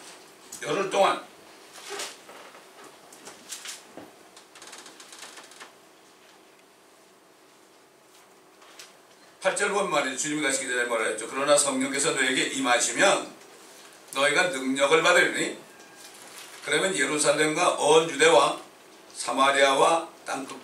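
A middle-aged man speaks slowly and earnestly through a microphone.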